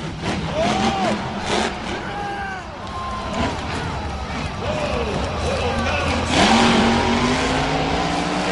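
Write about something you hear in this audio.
A monster truck engine roars loudly and revs up and down.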